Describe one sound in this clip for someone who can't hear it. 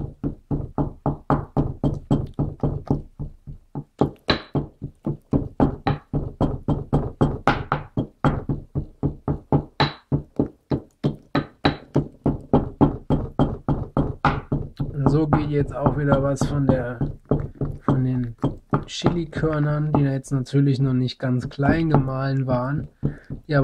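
A pestle pounds rapidly and steadily in a mortar.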